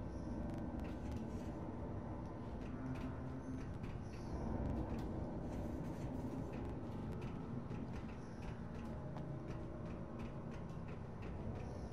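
Footsteps run quickly over a metal grating.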